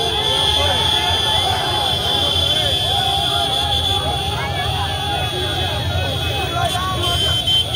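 A large crowd of men shouts and chatters outdoors.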